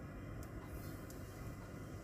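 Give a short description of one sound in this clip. Semolina pours into a pan of hot oil with a soft hiss.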